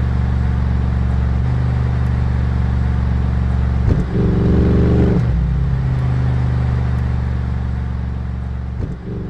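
A car engine idles with a deep, throaty rumble and briefly revs up.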